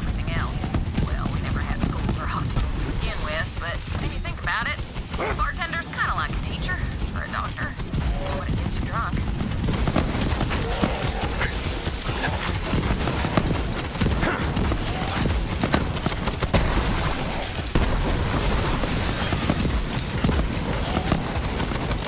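Rapid gunfire blasts continuously.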